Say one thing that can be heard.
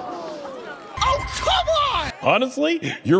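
A young man shouts loudly.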